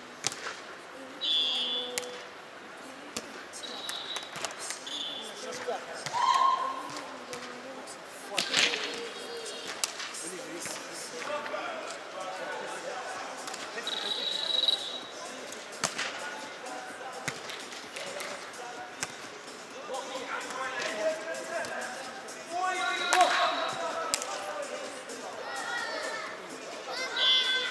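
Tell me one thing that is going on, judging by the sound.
Men call out and talk across the court in a large echoing hall.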